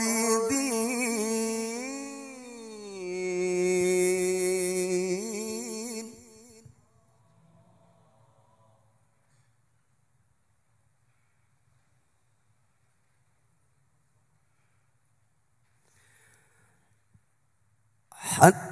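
A man sings a long, melodic chant into a microphone, heard through loudspeakers with echo.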